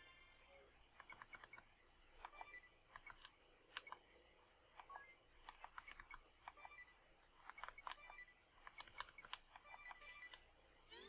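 Menu cursor beeps tick quickly.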